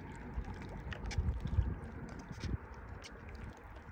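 Small waves lap gently against a stony shore.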